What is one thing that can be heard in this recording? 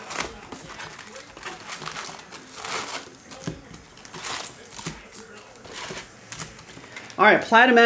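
Cardboard scrapes as card packs are slid out of a box.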